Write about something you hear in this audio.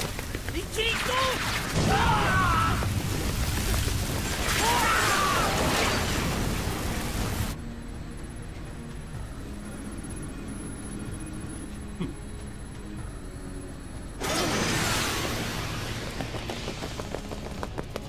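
Explosions boom and roar in heavy battle.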